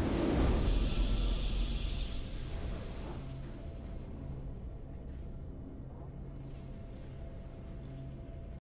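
A triumphant fanfare plays with steady held notes.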